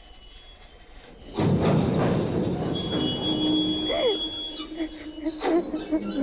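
A young woman sobs and cries close by.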